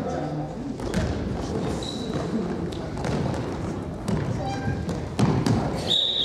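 A ball is kicked with dull thuds on a hard floor.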